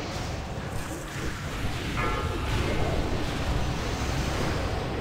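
Magic spells crackle and burst during a fantasy battle.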